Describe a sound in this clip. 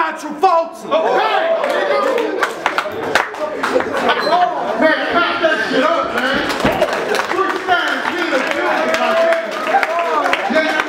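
A young man raps loudly and with energy into a microphone.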